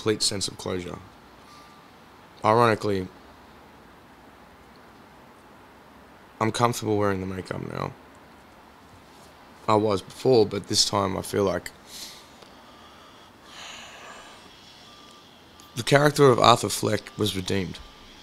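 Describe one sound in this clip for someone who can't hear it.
A man speaks calmly into a headset microphone, in short bursts with pauses.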